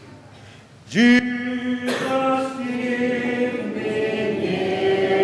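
A man sings a hymn through a microphone.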